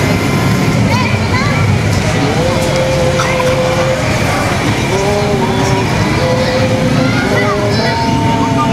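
A group of men sings together, heard through loudspeakers outdoors.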